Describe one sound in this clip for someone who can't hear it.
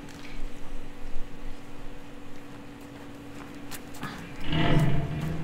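An audience murmurs quietly in a large hall.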